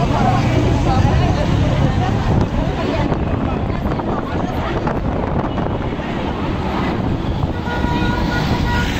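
Young children chatter and call out nearby outdoors.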